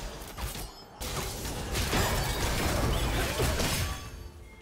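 Game spell effects burst and crackle during a fight.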